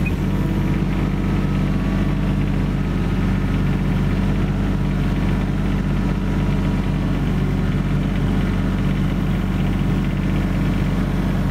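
Excavator tracks clank and squeak as the machine moves forward.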